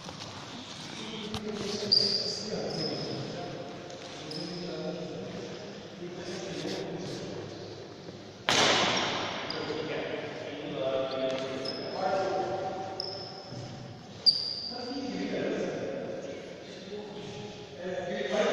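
Young men talk casually in a large echoing hall.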